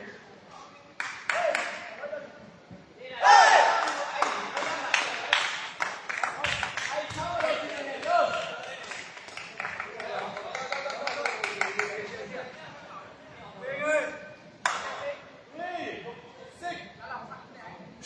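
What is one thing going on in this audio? Young men shout and cheer loudly in a large echoing hall.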